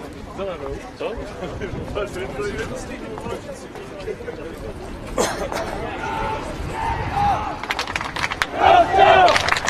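A crowd of men chatter and call out outdoors.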